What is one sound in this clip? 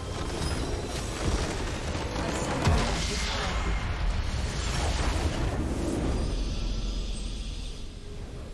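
A huge crystal structure shatters with a loud rumbling explosion.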